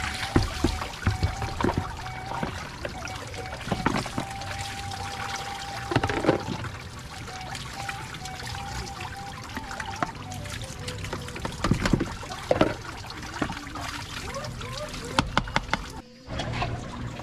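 Dishes clink and clatter as they are washed.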